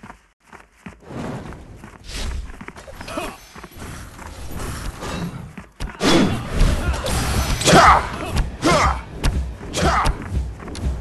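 Weapons clash and magic blasts burst in a loud fight.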